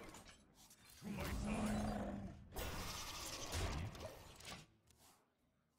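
Game sound effects whoosh and thump as cards land.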